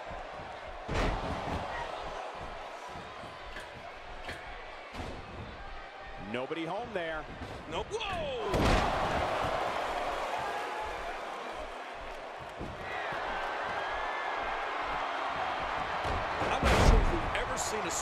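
Bodies slam hard onto a wrestling mat.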